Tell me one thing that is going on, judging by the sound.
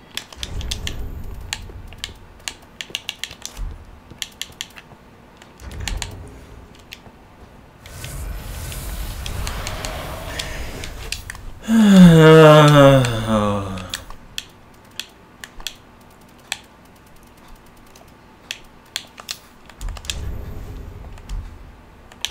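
Short menu clicks tick again and again.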